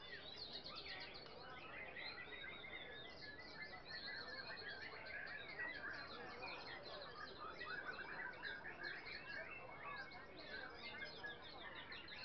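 A large crowd chatters outdoors at a distance.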